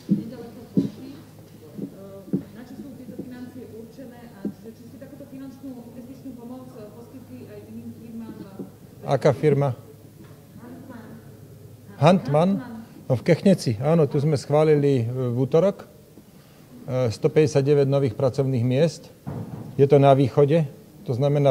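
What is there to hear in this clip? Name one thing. A middle-aged man speaks steadily into a microphone, heard close by.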